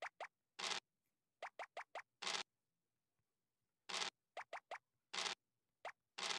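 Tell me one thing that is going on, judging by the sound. Game pieces click in quick hops as they move.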